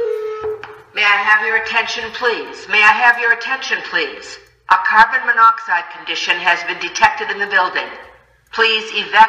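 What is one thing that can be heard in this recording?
A recorded voice announces over a loudspeaker in an echoing hallway.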